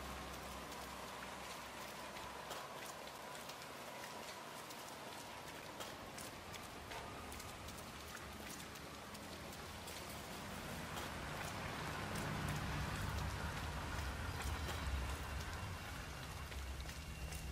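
Footsteps tap on a wet pavement.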